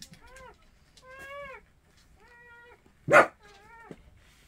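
A dog climbs into a plastic basket with a thump and rustling.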